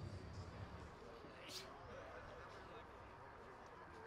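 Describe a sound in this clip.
A crowd of young men chatters outdoors nearby.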